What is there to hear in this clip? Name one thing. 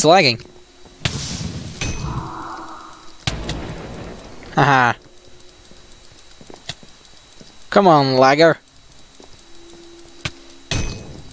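Sword strikes land with sharp, quick hits in a video game.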